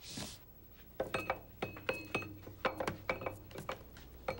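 A hammer taps on wood.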